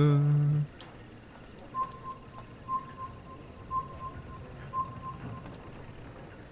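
A man talks calmly and close into a microphone.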